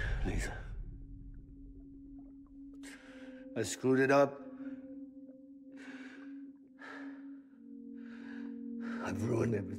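A man speaks in a weak, pained voice.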